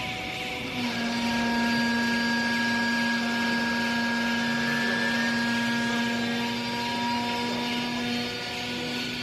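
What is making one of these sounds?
A hydraulic press hums steadily as its ram pushes down.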